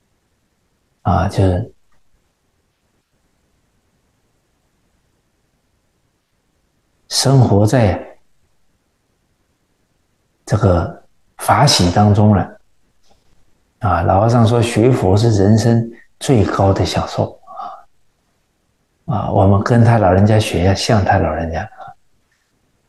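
An elderly man speaks calmly and warmly into a close microphone, in short phrases with pauses.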